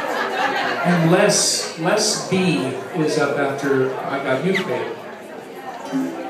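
A man plays a harmonica through a microphone.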